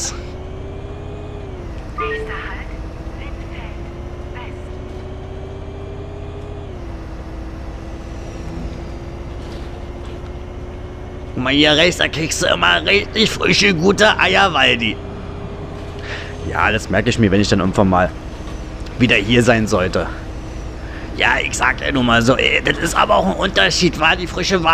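A bus engine hums steadily and shifts pitch as it drives.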